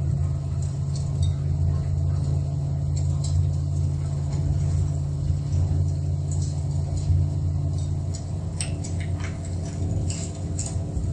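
Loose parts rattle and tick as the car drives over rough ground.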